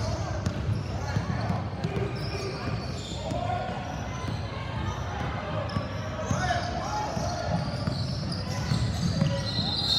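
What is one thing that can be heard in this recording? Girls shout and call out across the echoing gym.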